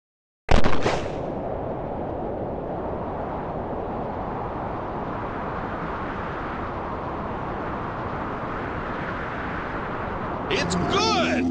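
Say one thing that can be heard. A dart whooshes steadily through the air.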